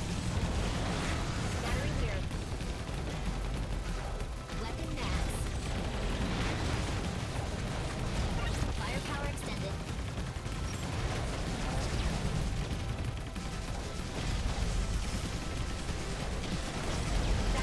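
Fast electronic blasts and explosions from a game crackle and boom throughout.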